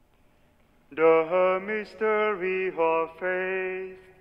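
A man sings a slow chant through a microphone in a large echoing hall.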